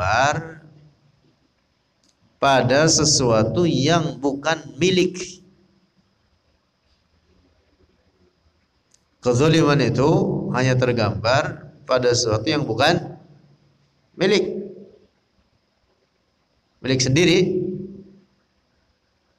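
A man speaks slowly and calmly into a microphone, in phrases with pauses.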